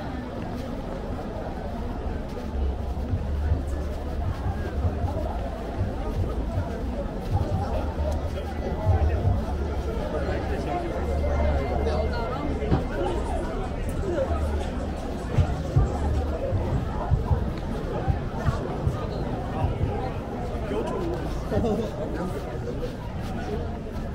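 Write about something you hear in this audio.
Footsteps tap on pavement close by.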